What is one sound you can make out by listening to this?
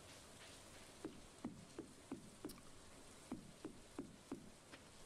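Footsteps knock on wooden planks.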